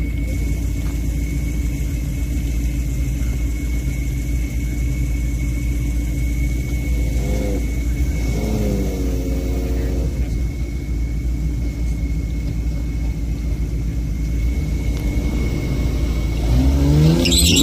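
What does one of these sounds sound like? Car engines idle nearby with a deep, steady rumble.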